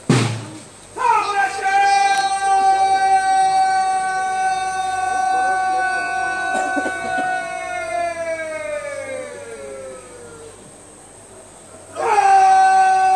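A long horn blares a sustained note that sinks in pitch at its end.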